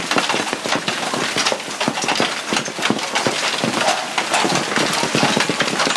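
Hail drums loudly and rapidly on an awning overhead.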